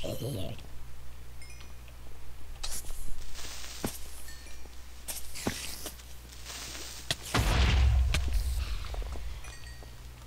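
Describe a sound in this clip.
Blocks break with a short crunching sound.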